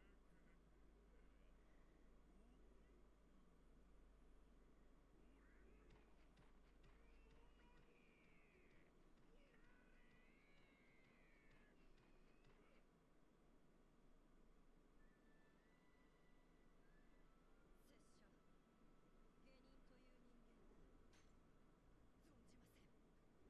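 A young man speaks quietly and calmly into a microphone.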